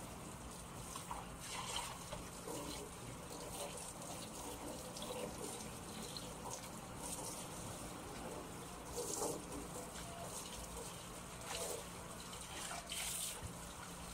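Wet clothes rustle and thump.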